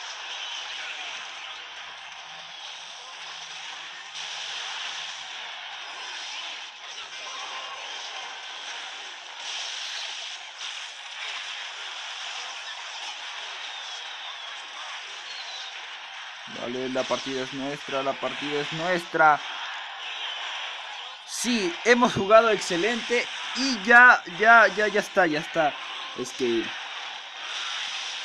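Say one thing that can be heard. Video game battle effects clash and crackle steadily.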